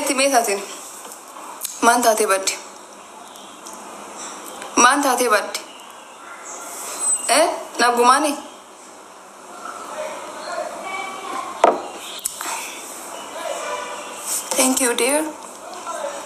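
A young woman speaks calmly and close up, in short bursts.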